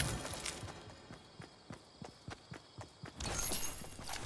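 Footsteps tap quickly on the ground.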